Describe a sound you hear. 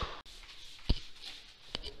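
An aerosol can sprays with a hiss.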